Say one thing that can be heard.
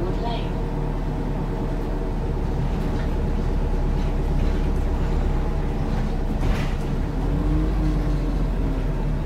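A bus interior rattles and creaks while driving.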